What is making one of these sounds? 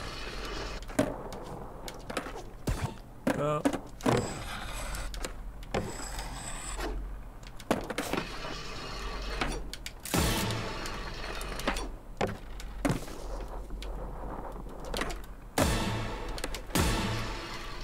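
A skateboard clacks sharply on landing.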